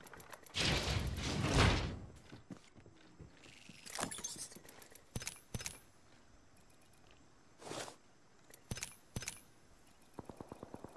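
Short game menu clicks and blips sound several times.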